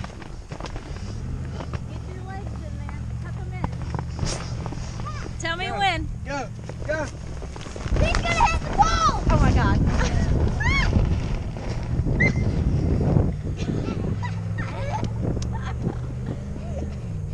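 Wind blows over an outdoor microphone.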